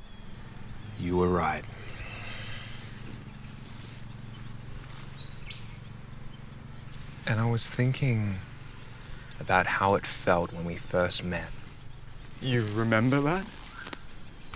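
A young man speaks calmly and quietly, close by.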